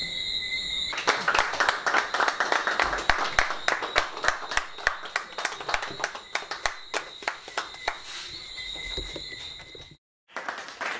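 A group of people clap their hands in applause.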